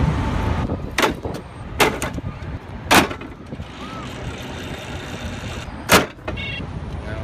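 A bicycle clicks and clunks against a metal dock.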